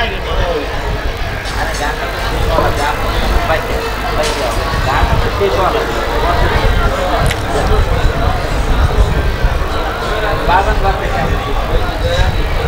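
A crowd of people sings along.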